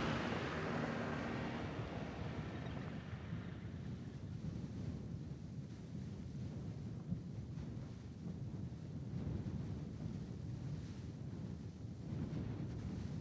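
Tyres crunch through packed snow.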